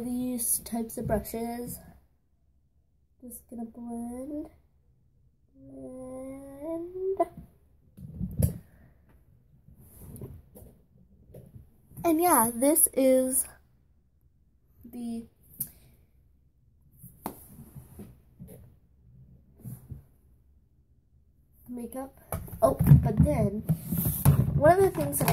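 A child talks close to a microphone, in bursts and with animation.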